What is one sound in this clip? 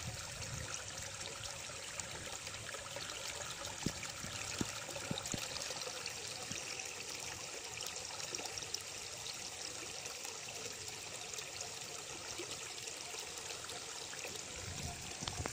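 Water gently sloshes as a bag is dipped into it.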